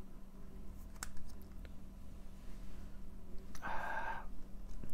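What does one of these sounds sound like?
A cable plug clicks and taps against a small electronic device.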